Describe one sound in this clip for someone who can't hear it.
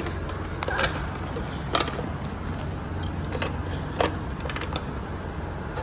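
Plastic toy parts click and knock under small hands.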